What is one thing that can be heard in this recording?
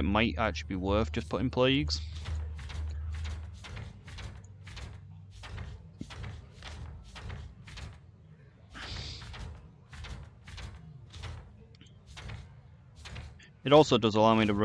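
Pages flip quickly with soft rustling clicks.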